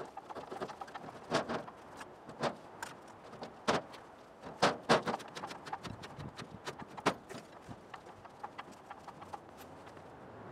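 A hydraulic crane's pump handle clicks and clanks as it is pumped.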